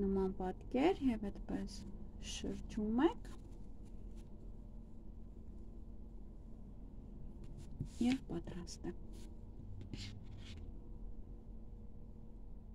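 Knitted yarn rustles softly as hands handle it.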